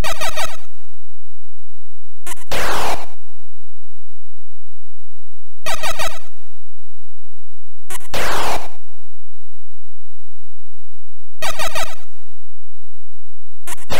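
Chiptune bleeps trill in short, rapid bursts.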